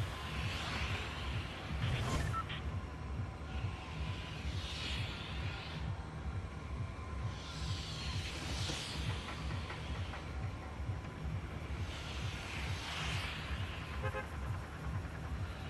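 Wind rushes past in repeated swells.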